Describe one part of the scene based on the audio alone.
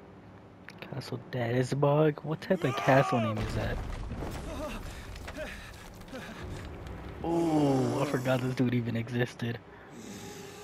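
A man speaks in a deep, calm voice.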